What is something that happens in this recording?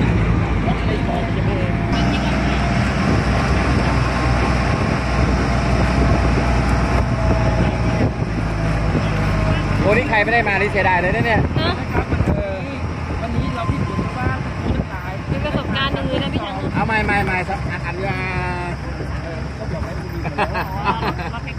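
A small engine hums while riding along a road.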